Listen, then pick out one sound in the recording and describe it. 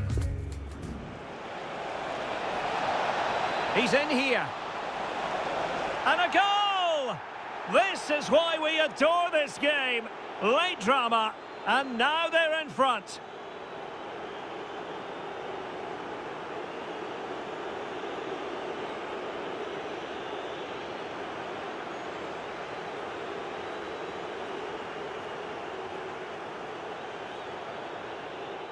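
A large stadium crowd roars steadily.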